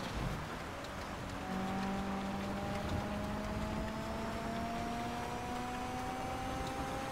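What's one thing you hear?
Tyres hiss over snowy road.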